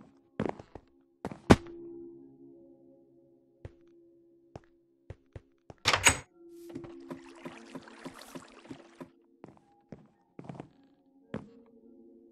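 Footsteps tap on stone blocks.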